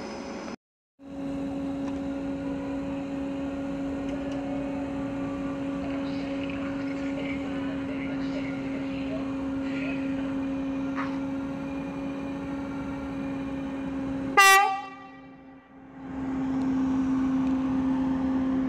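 A train engine hums steadily as the train rolls slowly closer.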